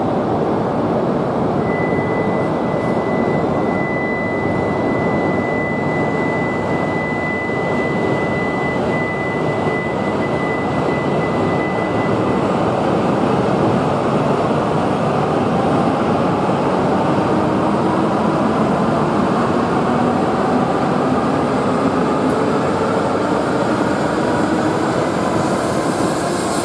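A high-speed train hums loudly alongside a platform.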